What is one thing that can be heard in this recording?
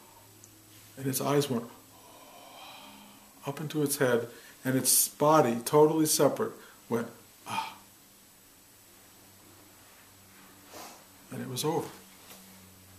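An older man speaks calmly and close by, in short bursts with pauses.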